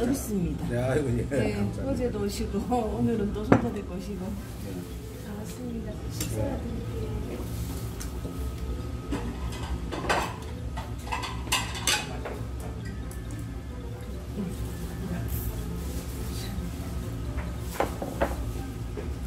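Dishes clink on a table.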